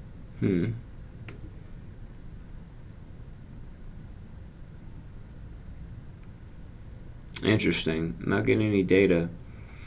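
A young man speaks casually into a close microphone.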